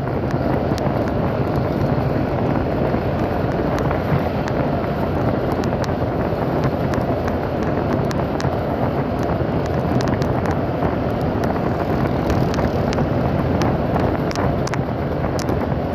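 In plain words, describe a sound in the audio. A scooter engine hums while cruising along a road.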